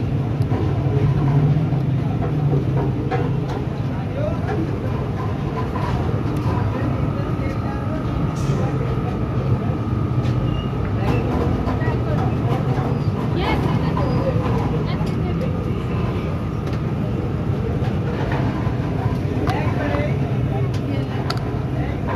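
A crowd chatters steadily in the background outdoors.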